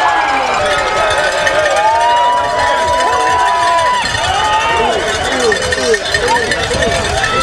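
A crowd cheers and shouts loudly close by.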